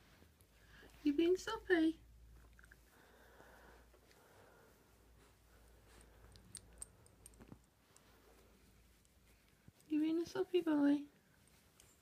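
A toy squeaks in short bursts as a dog bites it.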